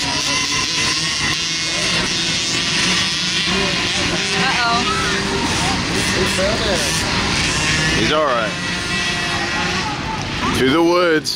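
Small dirt bike engines buzz and whine as they race past.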